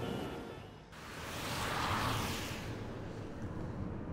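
A car drives past with a whoosh.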